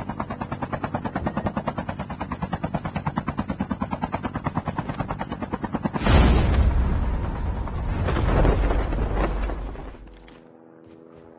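A helicopter's rotor thumps rapidly overhead.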